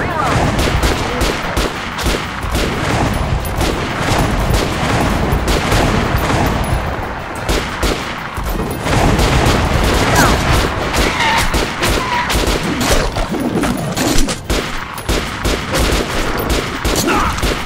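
An automatic rifle fires rapid bursts of shots up close.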